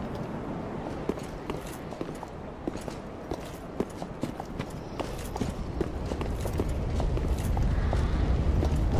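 Armored footsteps clank on stone as a knight runs.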